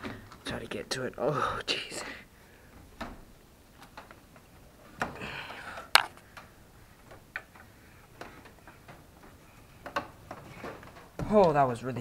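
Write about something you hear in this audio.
Footsteps thud and creak on wooden ladder rungs.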